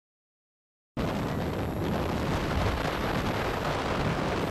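Wind rushes loudly past a vehicle riding along a road.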